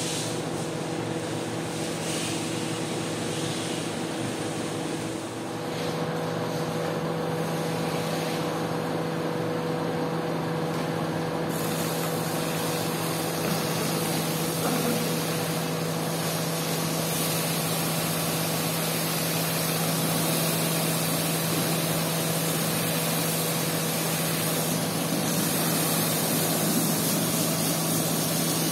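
Machines hum steadily throughout.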